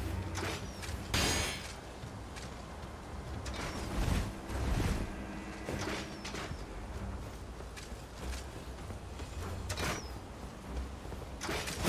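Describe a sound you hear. Armoured footsteps thud quickly on stone and grass.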